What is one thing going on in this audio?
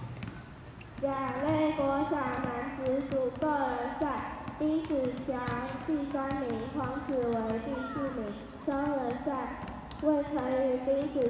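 A group of children sing together outdoors.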